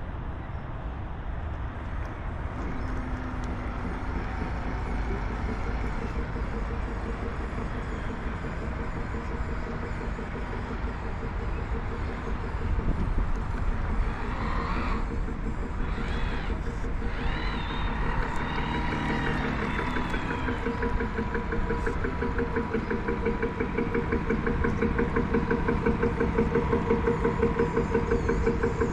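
Wind blows steadily across open water outdoors.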